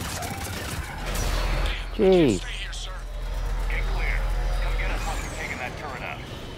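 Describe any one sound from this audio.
A deep explosion rumbles and fades.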